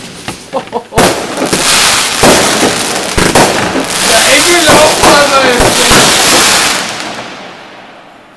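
Fireworks crackle and fizz as sparks burst.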